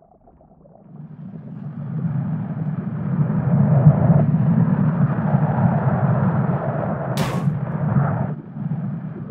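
A glass ball rolls along a hard floor with a low, steady rumble.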